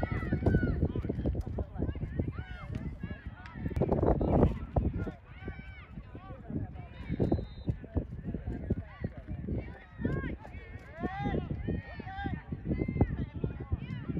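Young players and onlookers shout and call out across an open field.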